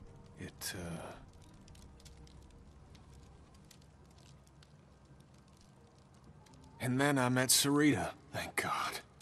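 A man speaks in a low, weary voice, close by.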